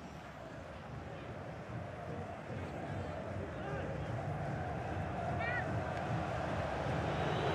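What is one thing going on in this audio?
A stadium crowd roars, growing steadily louder.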